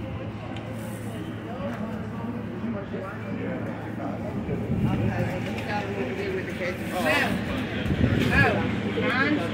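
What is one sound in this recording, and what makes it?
Several adults talk outdoors.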